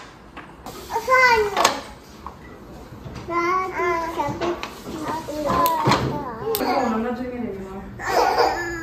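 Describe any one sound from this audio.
A young child babbles and talks nearby.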